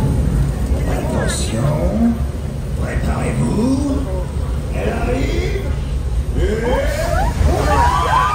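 Flames roar with a low rumble.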